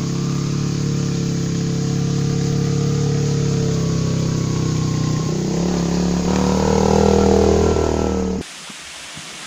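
A motorbike engine hums steadily and grows louder as it approaches.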